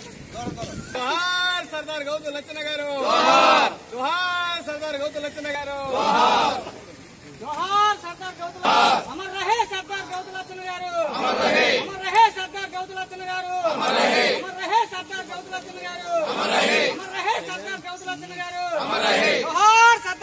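A group of men chant slogans loudly in unison outdoors.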